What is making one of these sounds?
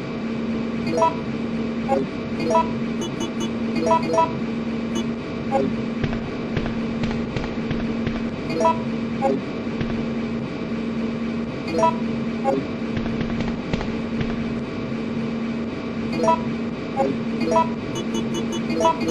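Short electronic beeps sound as a game menu is browsed.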